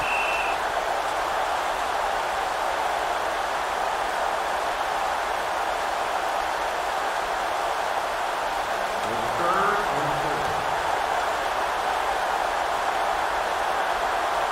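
A stadium crowd roars steadily in the distance.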